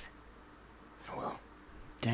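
A young man answers briefly in a calm voice.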